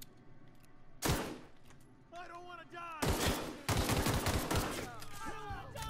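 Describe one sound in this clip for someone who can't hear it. A pistol fires loud shots.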